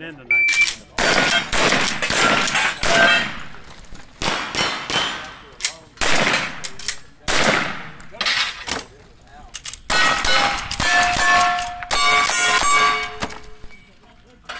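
Steel targets ring with metallic pings after the hits.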